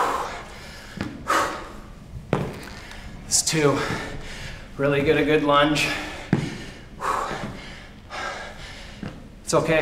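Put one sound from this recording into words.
Feet thump on a hard floor.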